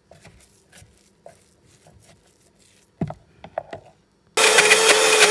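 A spatula scrapes thick dough in a bowl.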